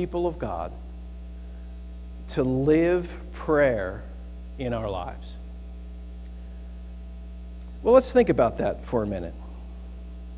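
A middle-aged man speaks slowly and calmly through a microphone, with pauses between phrases.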